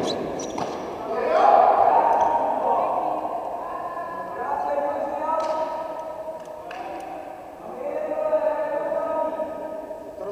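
Children shout and cheer in a large echoing hall.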